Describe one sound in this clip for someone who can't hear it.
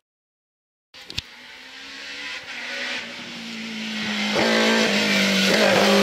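A rally car engine approaches from a distance, rising in loudness.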